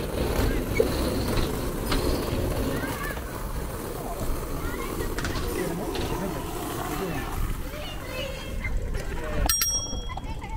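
Suitcase wheels rumble over pavement.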